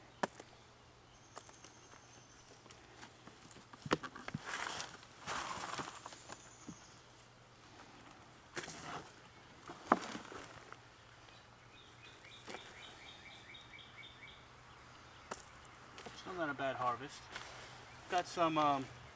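Gloved hands scrape and pat soil.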